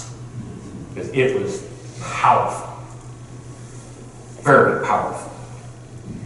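An older man speaks calmly through a microphone in a large echoing hall.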